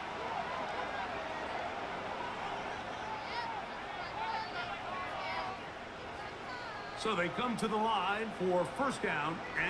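A large crowd murmurs and cheers steadily in a big open stadium.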